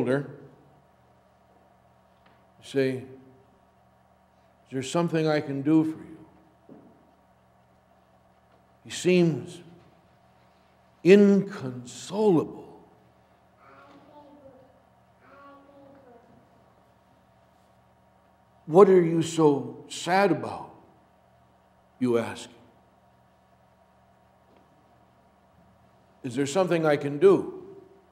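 An older man speaks slowly and calmly into a microphone in an echoing hall, pausing between phrases.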